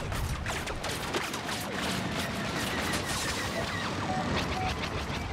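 A starship engine roars.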